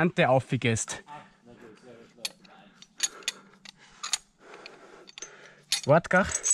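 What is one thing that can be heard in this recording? Metal carabiners clink against a steel chain.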